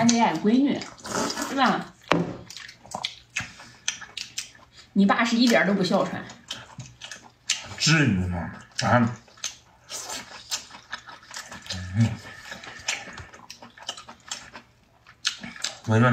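A man chews and smacks his lips close by.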